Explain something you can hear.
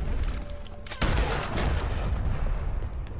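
A rifle shot cracks loudly and echoes away.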